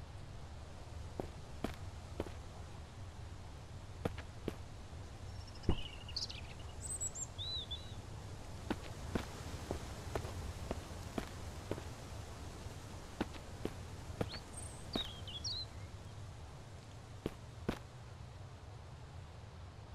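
Footsteps crunch on dry leaves and then thud on wooden boards.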